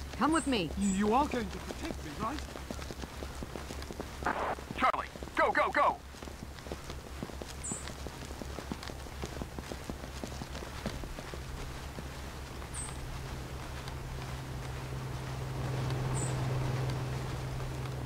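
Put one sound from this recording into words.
Footsteps tread steadily on hard ground and grass.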